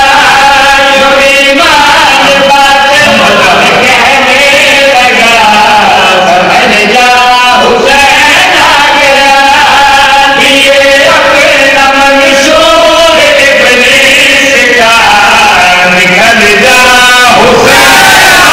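A man chants loudly into a microphone through loudspeakers.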